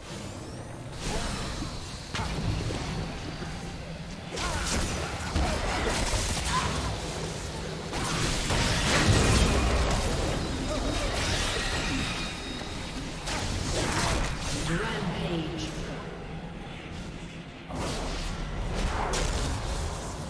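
Game characters clash with sharp hits and blasts.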